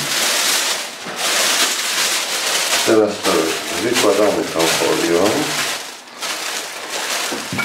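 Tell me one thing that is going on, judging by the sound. Plastic sheeting crinkles and rustles as it is handled.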